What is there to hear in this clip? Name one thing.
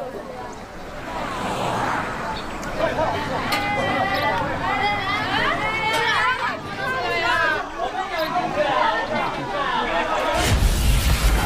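A crowd of young women chatters excitedly.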